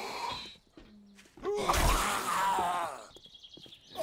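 A knife slashes wetly into flesh.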